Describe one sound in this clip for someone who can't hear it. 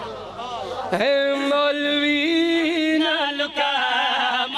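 A man chants in a long, sustained voice through a loudspeaker.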